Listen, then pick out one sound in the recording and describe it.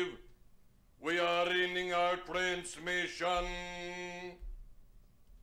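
An elderly man speaks in a drawn-out, sing-song voice.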